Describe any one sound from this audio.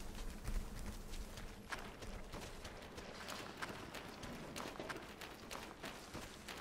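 Bare footsteps pad quickly over grass and stone.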